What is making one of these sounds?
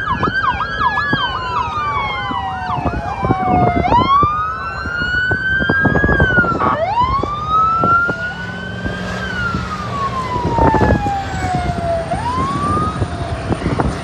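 Sirens wail and whoop loudly as a convoy passes close by.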